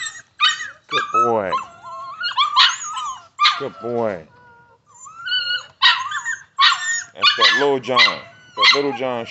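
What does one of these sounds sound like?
Dogs whine with high, squeaky cries up close.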